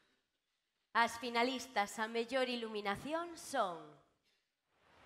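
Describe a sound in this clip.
A young woman speaks into a microphone over loudspeakers in a large hall.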